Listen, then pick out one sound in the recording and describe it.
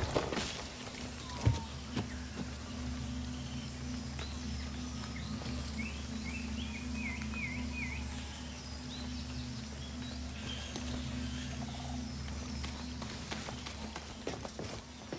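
Footsteps crunch softly on leafy ground.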